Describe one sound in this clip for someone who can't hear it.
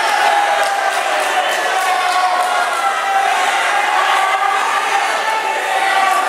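A crowd of children and adults chatters and shouts in a large echoing hall.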